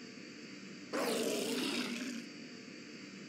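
A large monster gives a loud, rough roar.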